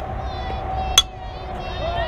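A softball bat strikes a ball with a sharp crack.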